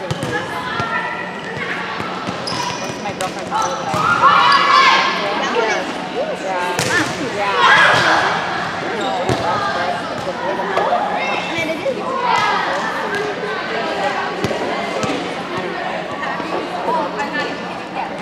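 Girls shout and call out to each other in a large echoing gym.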